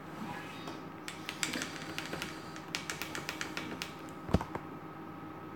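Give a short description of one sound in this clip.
A gaming machine gives off a rapid run of clicking ticks.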